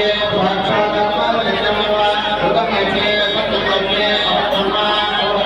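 A man chants steadily into a microphone, heard through a loudspeaker.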